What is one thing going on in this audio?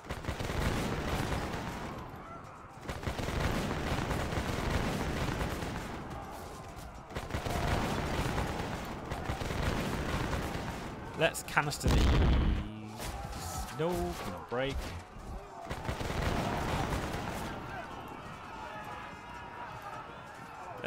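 Musket volleys crackle in bursts.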